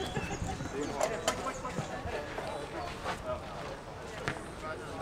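Tennis balls are struck with rackets with sharp pops.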